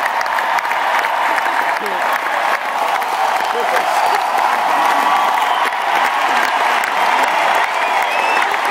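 A large crowd cheers and shouts loudly all around.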